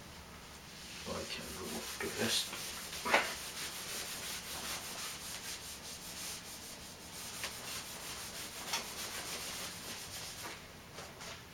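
An eraser rubs and squeaks across a whiteboard.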